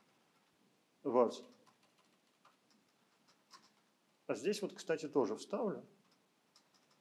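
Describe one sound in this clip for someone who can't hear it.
An elderly man speaks calmly through a microphone in short bursts.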